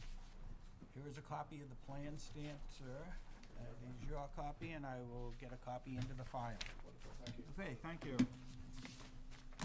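A man speaks calmly into a microphone in a quiet room.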